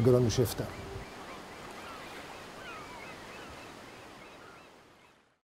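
Water swishes softly along the hull of a passing boat.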